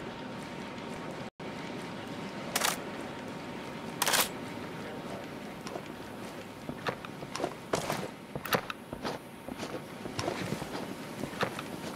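Footsteps scuff on concrete.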